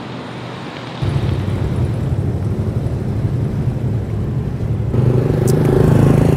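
Traffic hums on a nearby street.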